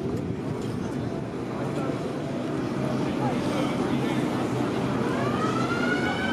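An old truck engine rumbles as the truck drives slowly past.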